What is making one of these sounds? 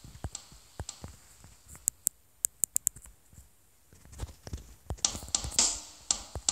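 Electronic drums and cymbals are struck in quick, uneven hits.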